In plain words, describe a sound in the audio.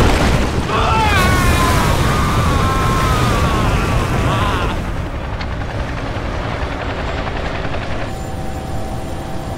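Molten lava churns and rumbles deeply.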